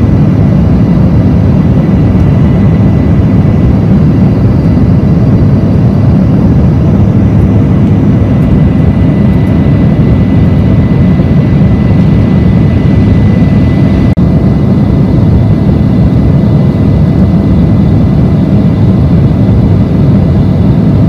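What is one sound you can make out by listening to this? Jet engines roar steadily and loudly from inside an airliner cabin.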